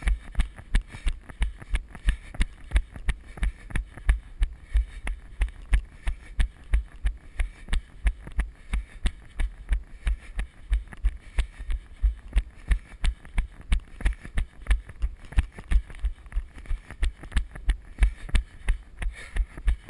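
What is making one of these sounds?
A bicycle rattles and thumps over a bumpy dirt trail.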